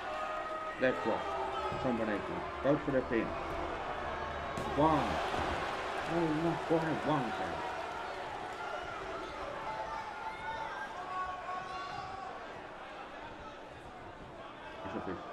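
A crowd cheers and murmurs.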